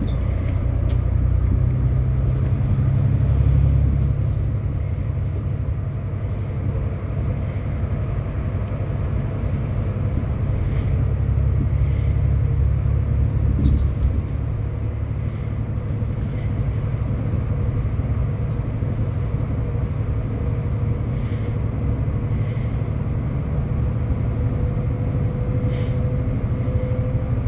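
A bus rattles and vibrates over the road.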